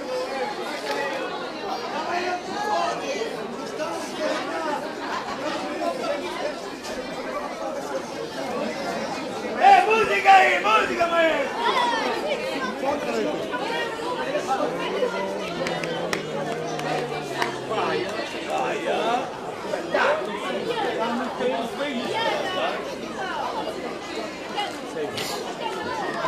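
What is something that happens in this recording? A crowd of men, women and children chatters all around.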